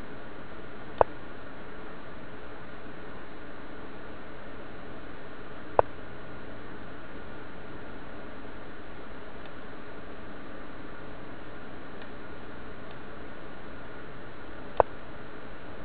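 A chess piece clicks down on a board now and then.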